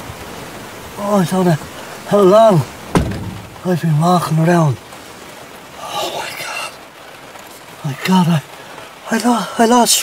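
A man speaks quietly and tensely nearby.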